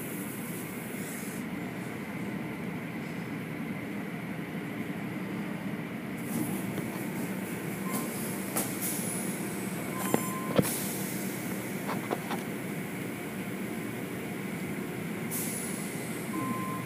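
Large cloth brushes swish and slap against a car.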